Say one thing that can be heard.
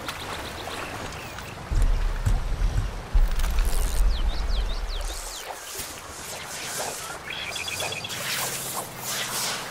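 Water laps gently at a shore.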